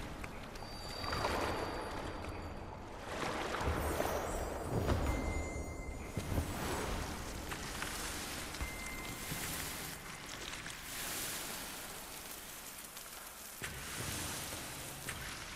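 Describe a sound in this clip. Airy whooshing swells rise and fall.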